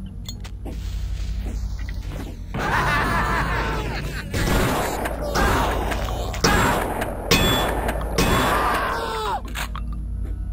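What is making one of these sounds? Gunshots boom repeatedly.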